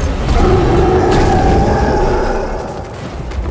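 Large wings beat with heavy whooshes.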